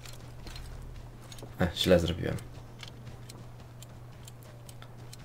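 A metal lockpick scrapes and clicks softly inside a lock.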